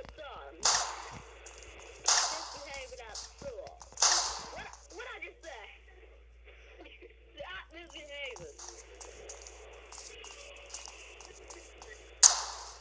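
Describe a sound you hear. Rifle shots crack loudly, several times, with a short ringing tail.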